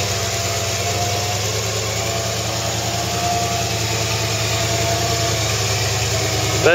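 A truck engine rumbles and strains as it crawls over rock.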